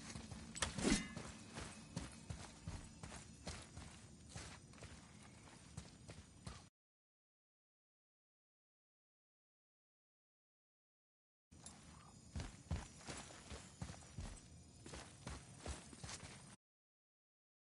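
Heavy footsteps thud on stone.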